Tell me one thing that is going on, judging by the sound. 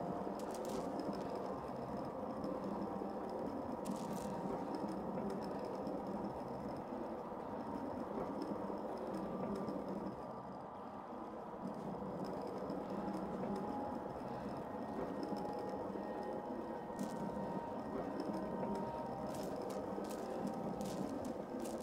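A rope creaks as it swings slowly back and forth.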